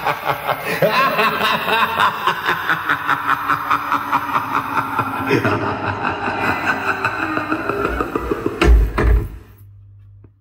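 Music with a quick, steady beat plays loudly through loudspeakers and then suddenly stops.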